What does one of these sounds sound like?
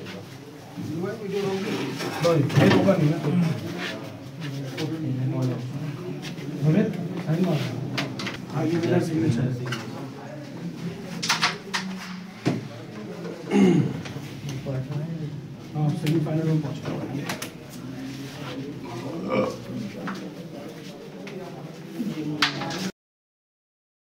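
Several men talk over one another in a crowded room.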